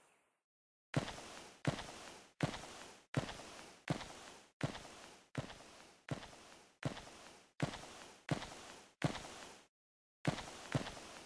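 Heavy footsteps thud slowly.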